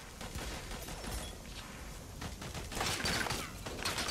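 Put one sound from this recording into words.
An explosion roars.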